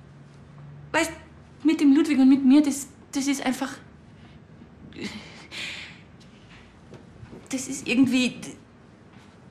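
A young woman speaks close by in an upset, tearful voice.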